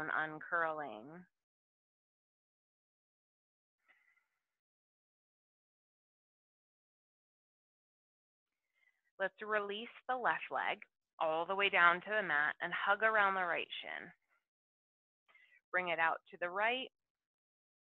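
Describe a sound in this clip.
A woman speaks calmly, giving instructions close to a microphone.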